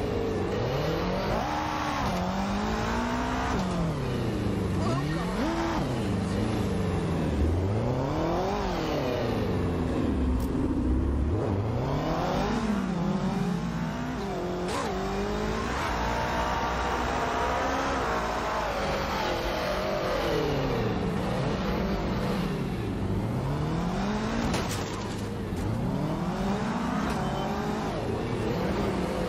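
A motorcycle engine revs up and down over and over.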